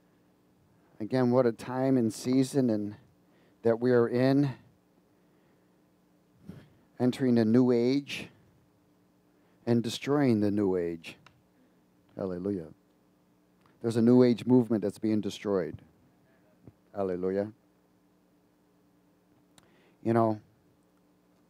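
A middle-aged man speaks calmly through a headset microphone, in short phrases with pauses.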